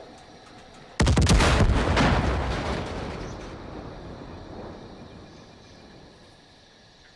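A helicopter explodes with a loud boom that rumbles away.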